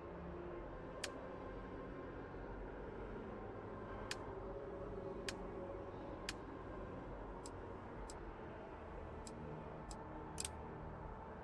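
Short soft interface clicks tick now and then.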